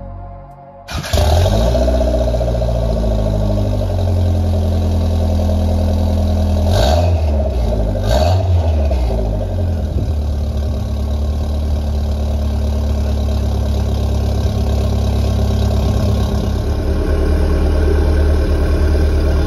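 A car exhaust idles with a deep, steady rumble.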